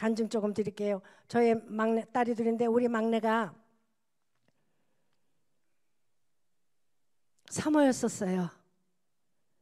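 An elderly woman speaks expressively into a microphone.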